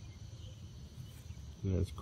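A thumb rubs dirt off a metal coin.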